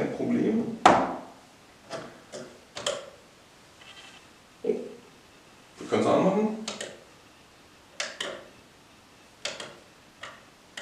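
A light switch clicks repeatedly.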